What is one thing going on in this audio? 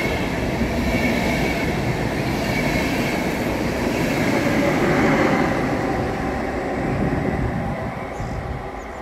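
A passenger train rumbles past close by and fades away.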